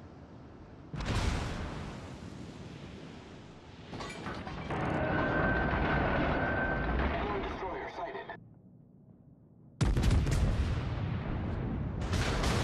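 Heavy naval guns fire with deep booming blasts.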